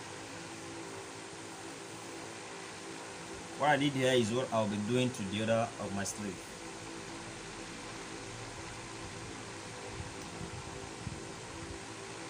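An iron slides softly over fabric.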